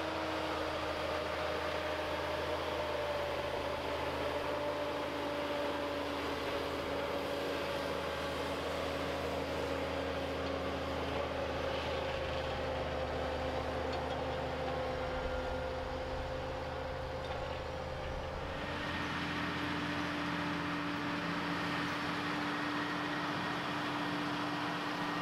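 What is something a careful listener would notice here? A diesel tractor engine runs under load.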